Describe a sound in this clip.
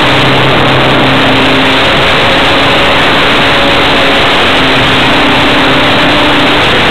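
Wind rushes loudly and steadily past.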